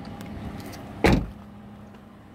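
A car door shuts with a solid thud.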